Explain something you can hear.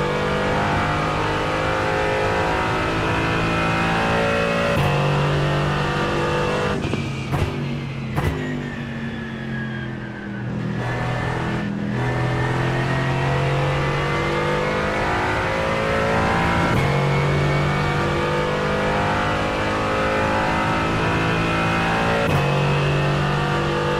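A race car engine roars loudly, its pitch climbing and dropping with each gear change.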